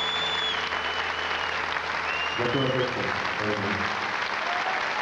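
A band plays music on stage and stops.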